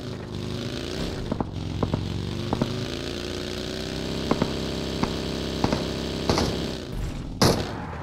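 A buggy engine roars steadily as it drives over rough ground.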